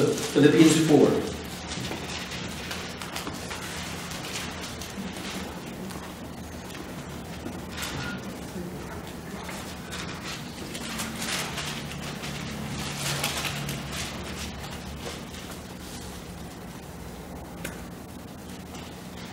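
A middle-aged man reads aloud calmly into a microphone.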